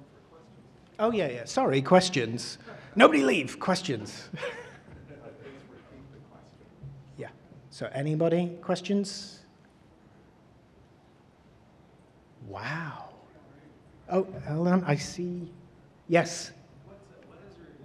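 A man speaks into a microphone in a large hall, with pauses.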